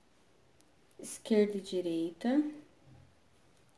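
A woman speaks close to the microphone.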